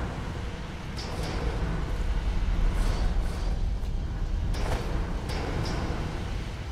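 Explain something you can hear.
Footsteps tread softly on stone.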